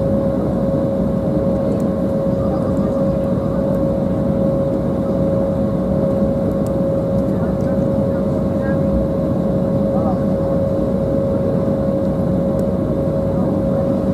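Jet engines hum and whine steadily from inside an aircraft cabin.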